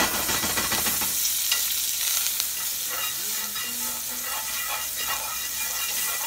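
Food sizzles and hisses loudly in a hot pan.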